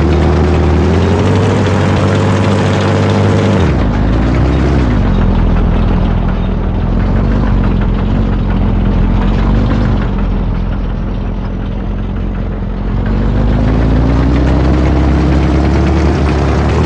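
A tank engine rumbles steadily, its pitch rising and falling.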